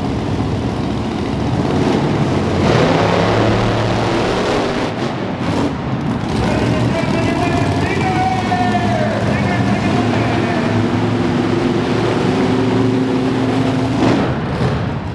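Big truck engines roar loudly in a large echoing arena.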